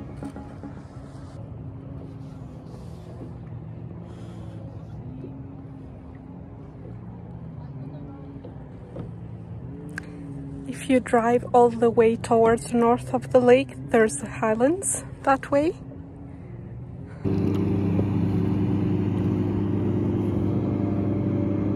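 Water laps gently against a kayak's hull.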